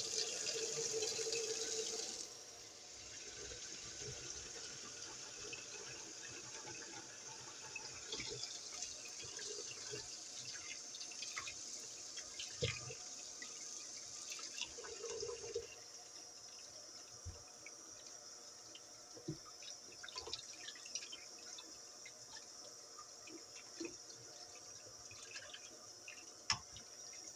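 Water splashes into a plastic tub.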